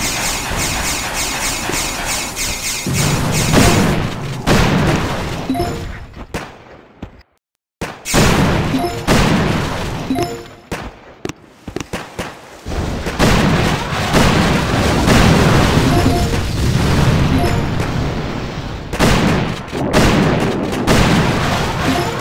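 Explosions boom and gunfire rattles in a game battle.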